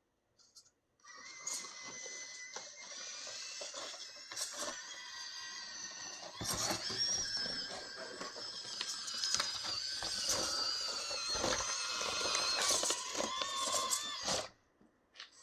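A small electric motor whines as a toy truck climbs over rough ground.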